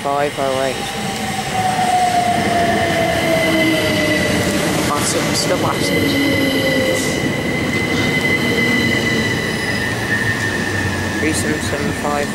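An electric train rumbles loudly along the tracks as it passes close by.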